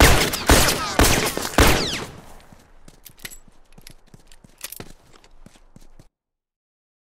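Footsteps tread softly through grass.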